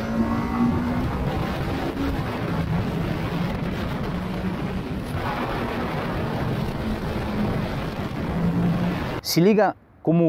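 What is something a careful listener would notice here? A motorcycle engine roars steadily at speed, rising and falling in pitch.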